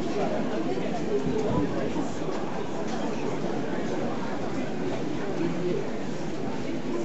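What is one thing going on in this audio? A crowd of men and women murmurs and chatters nearby outdoors.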